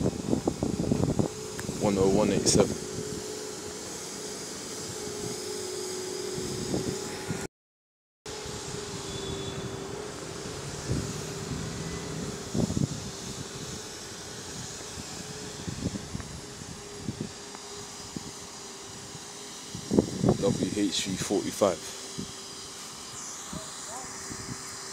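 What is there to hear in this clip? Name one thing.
Bus and van engines idle nearby with a steady low hum.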